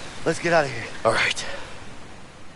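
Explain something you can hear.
A man answers briefly.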